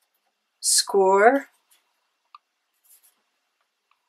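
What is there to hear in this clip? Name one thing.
A hand shuffles sheets of paper.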